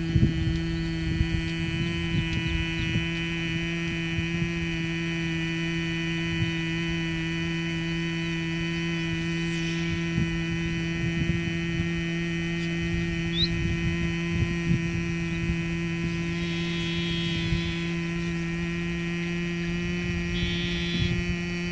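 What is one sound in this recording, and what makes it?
A man hums a low, steady note.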